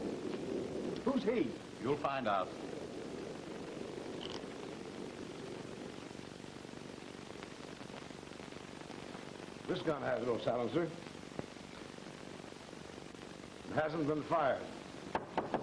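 Adult men speak in short phrases, heard through an old, hissy film soundtrack.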